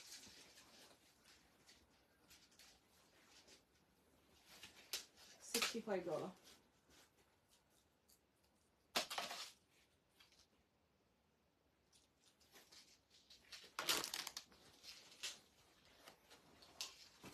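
Silk fabric rustles as it is unfolded and shaken.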